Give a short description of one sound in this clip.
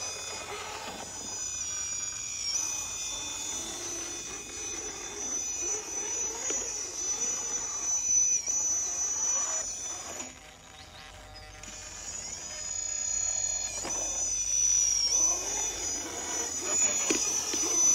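Plastic tyres scrape and crunch on rough rock.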